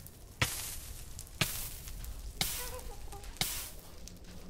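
Lava bubbles and pops nearby.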